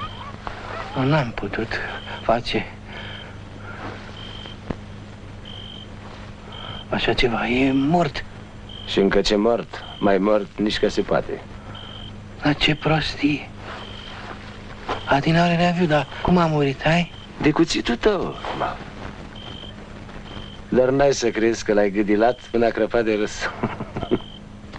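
Men speak in tense, urgent voices.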